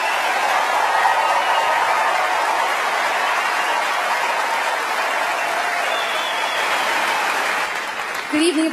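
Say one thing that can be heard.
A large crowd applauds and cheers loudly in a big hall.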